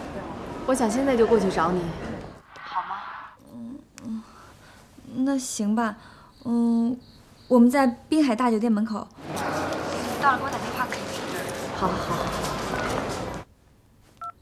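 A woman speaks on the phone in a calm, friendly voice.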